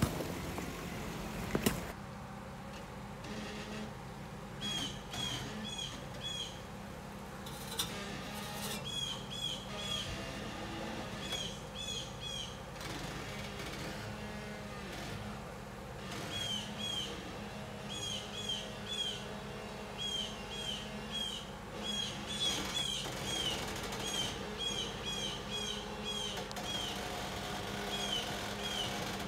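An engine idles low and steady, revving now and then.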